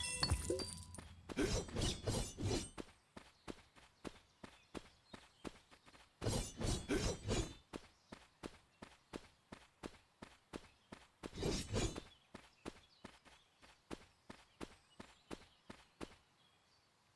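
Quick light footsteps patter on grass.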